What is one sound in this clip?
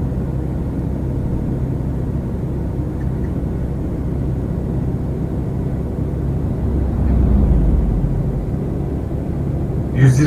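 A truck engine drones low and steady.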